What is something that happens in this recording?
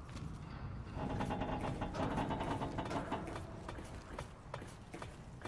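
Hands and boots clank on a metal ladder while climbing.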